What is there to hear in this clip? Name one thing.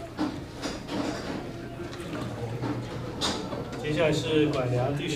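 A middle-aged man speaks calmly nearby, in a slightly echoing room.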